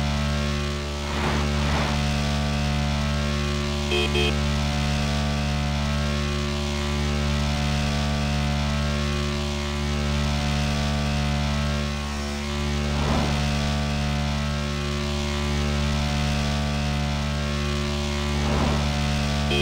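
Vehicles whoosh past the motorcycle.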